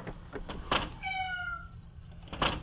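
A crow caws.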